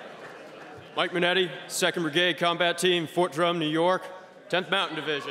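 A young man speaks loudly into a microphone over loudspeakers in a large echoing hall.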